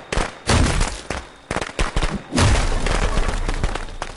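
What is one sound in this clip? A wooden door splinters and bursts open.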